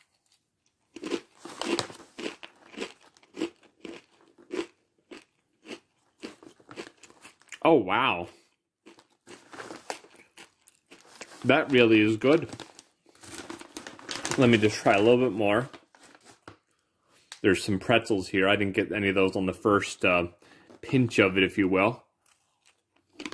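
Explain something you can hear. A plastic snack bag crinkles as it is handled.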